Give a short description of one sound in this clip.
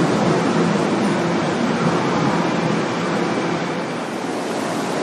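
A train rolls past close by with a steady rumble.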